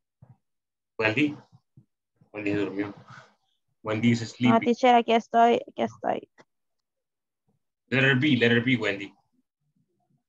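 A young man speaks over an online call.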